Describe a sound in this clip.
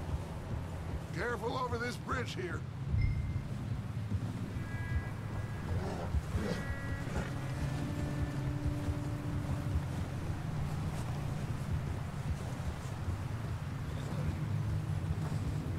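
Wind blows in a low, steady rumble.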